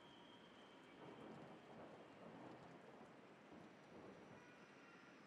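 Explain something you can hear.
A young man murmurs quietly into a microphone.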